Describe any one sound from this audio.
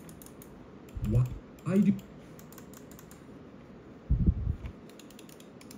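A computer mouse slides and knocks on a desk.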